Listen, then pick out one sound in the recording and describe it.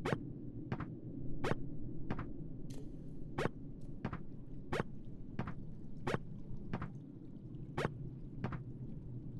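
Game footsteps tap in a quick, steady rhythm.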